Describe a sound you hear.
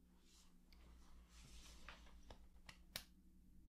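Clothes rustle as two people hug.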